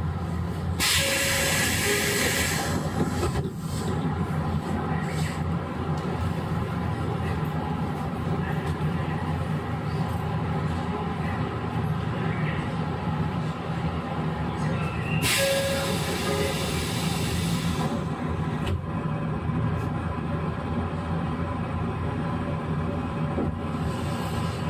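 An electric train hums steadily nearby.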